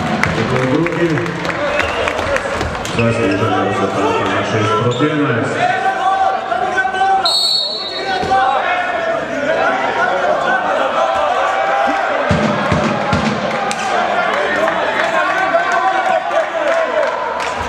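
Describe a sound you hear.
A crowd chants and cheers in a large echoing hall.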